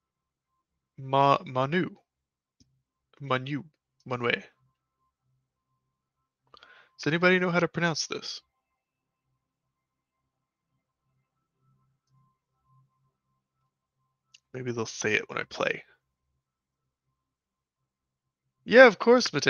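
A young man talks calmly into a microphone up close, in short bursts with pauses.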